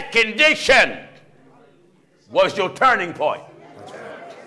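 A man preaches loudly and with animation through a microphone in a large echoing hall.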